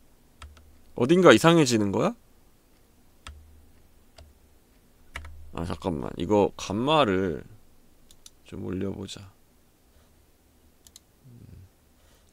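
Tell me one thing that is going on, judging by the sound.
A man speaks with animation into a close microphone, his voice rising and falling in pitch.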